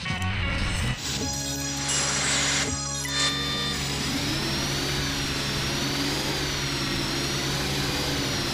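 A diesel articulated dump truck engine drones as it drives.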